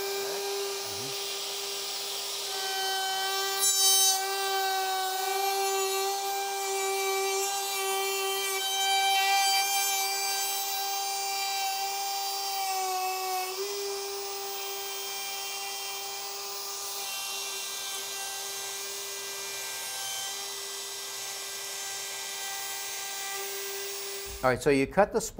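A router whines steadily as it cuts into wood.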